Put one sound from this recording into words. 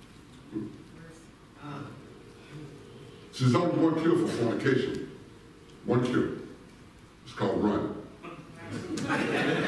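A man speaks through a microphone in a large echoing hall, in bursts with pauses.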